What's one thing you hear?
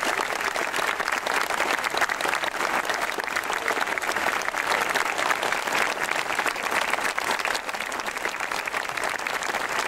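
A crowd applauds steadily outdoors.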